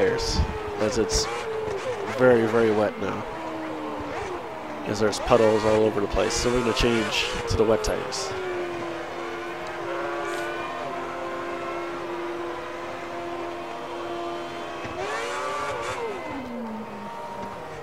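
A racing car engine revs hard, rising and falling sharply through the gears.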